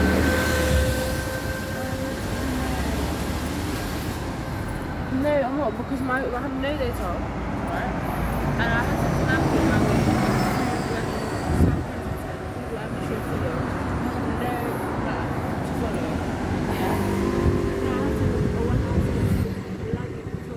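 Traffic rumbles past on a nearby street.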